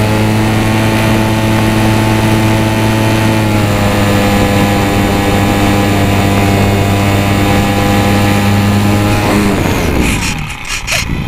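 An electric motor hums steadily at a high pitch, then winds down.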